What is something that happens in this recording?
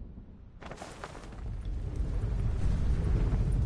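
Wind rushes loudly past a figure gliding through the air.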